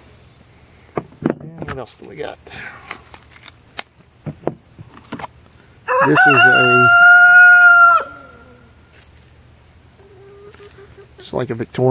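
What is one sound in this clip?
A pocket knife blade snaps shut with a sharp click.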